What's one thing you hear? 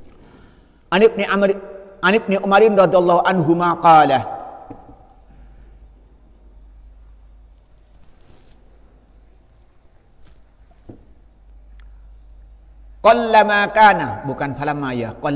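A man recites in a melodic chant through a microphone, with a slight echo.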